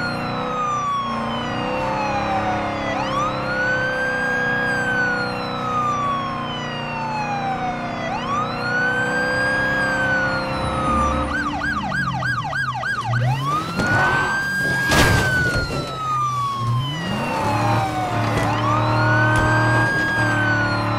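A car engine hums as the car drives along a road.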